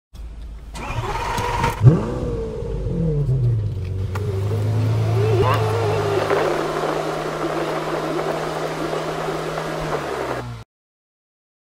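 Wind rushes past an open car.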